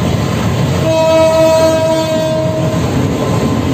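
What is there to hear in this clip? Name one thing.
A train horn blares briefly close by.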